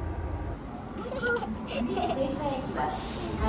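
Young children chatter and laugh close by.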